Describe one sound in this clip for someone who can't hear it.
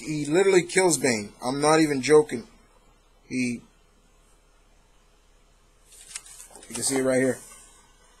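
A young man talks casually, close to the microphone.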